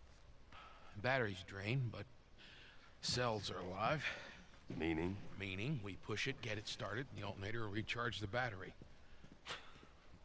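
A man with a rough voice explains at length, calmly.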